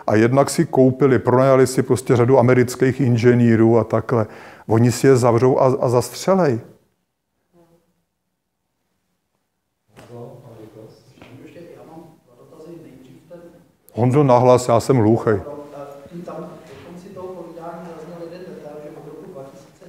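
A man speaks to an audience with animation, his voice echoing in a hall.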